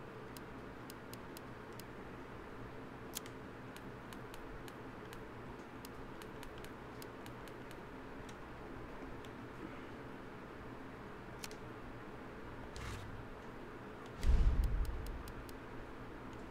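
Short, soft clicks tick again and again as a menu selection moves.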